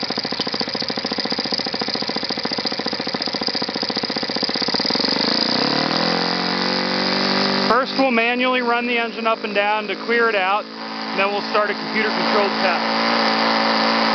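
A small model engine runs loudly with a fast, buzzing rattle.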